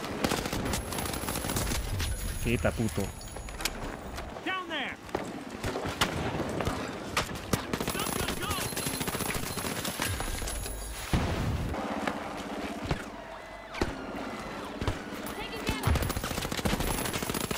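A rifle fires in bursts in a shooter game.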